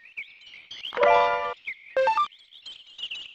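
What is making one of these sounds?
A bright chime rings out as a treasure chest opens.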